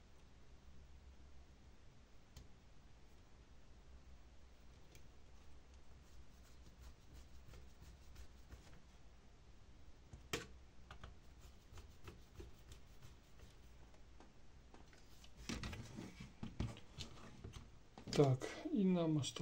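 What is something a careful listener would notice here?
Small metal parts click and clatter as they are handled.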